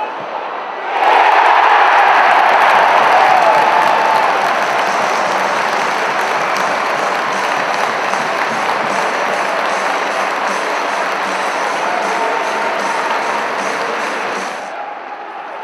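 A stadium crowd cheers and roars after a goal.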